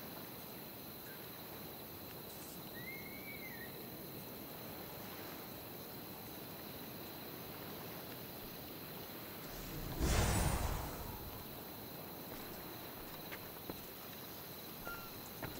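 Gentle waves lap softly against a shore.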